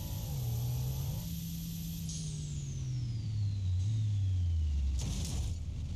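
A car engine drones loudly, its pitch slowly dropping.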